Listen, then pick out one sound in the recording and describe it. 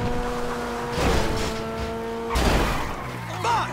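A car thumps into something with a crash.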